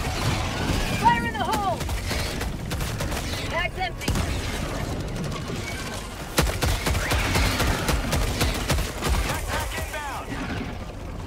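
Alien creatures screech and shriek.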